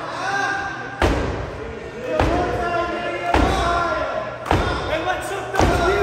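Hard blows thud at a steady pace.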